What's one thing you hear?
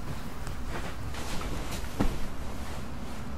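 Bedding rustles as a man sits down on a bed.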